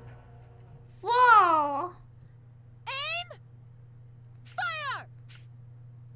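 Short, bright, swooping game sound effects play a few times.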